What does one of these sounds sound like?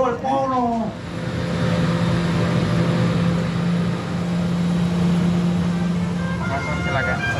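Jet engines hum steadily outdoors.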